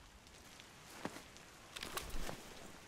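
A menu opens in a game with sharp clicks.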